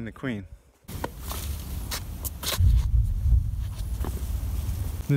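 Shoes scuff and thump on a fallen tree trunk.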